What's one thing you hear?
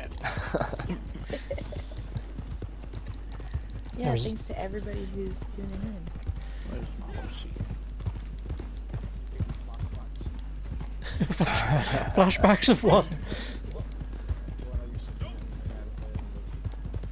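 Horse hooves clop steadily on a dirt trail.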